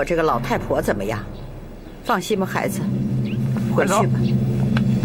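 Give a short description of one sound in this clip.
An elderly woman speaks calmly and firmly.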